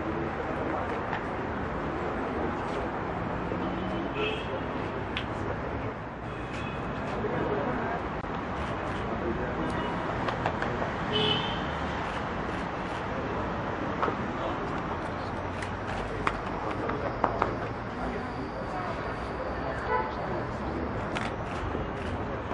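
A crowd of men murmur and talk quietly in a large echoing hall.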